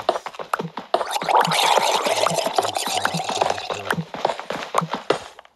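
A pickaxe chips at stone in quick, repeated taps.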